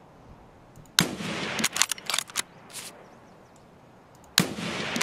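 A rifle fires loud, sharp shots outdoors.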